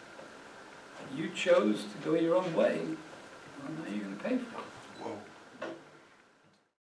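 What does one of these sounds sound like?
An elderly man speaks to a room with animation, slightly echoing.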